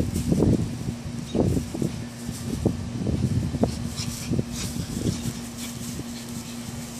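Small puppies growl and yap playfully.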